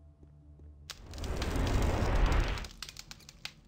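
A magical portal whooshes loudly.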